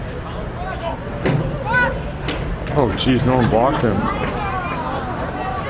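Men shout and call out loudly outdoors.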